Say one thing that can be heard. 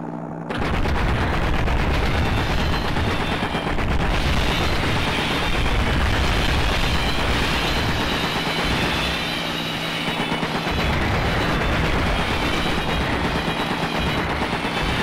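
A gun fires rapidly in long bursts.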